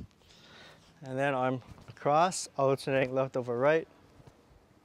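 A young man speaks clearly and calmly, close by.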